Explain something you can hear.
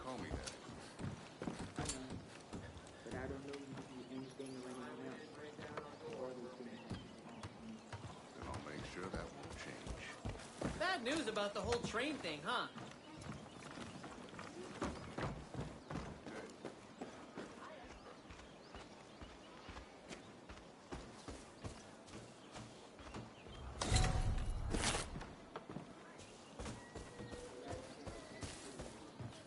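Footsteps thud on wooden boards at a steady walking pace.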